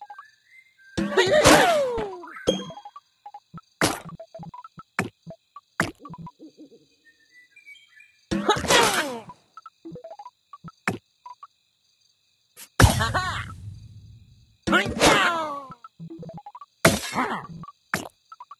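Whooshing blasts sweep through as special pieces explode.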